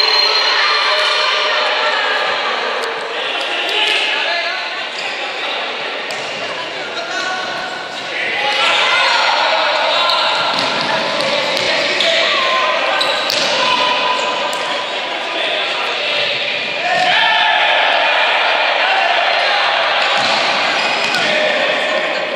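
A crowd of young spectators cheers and chants loudly in an echoing hall.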